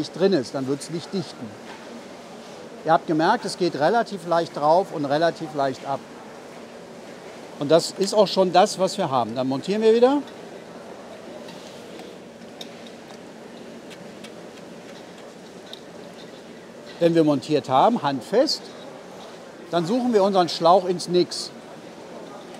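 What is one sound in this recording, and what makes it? A middle-aged man speaks calmly close by, explaining.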